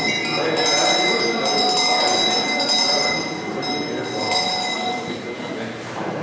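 Small handheld devices give off high, steady ringing tones that slowly fade.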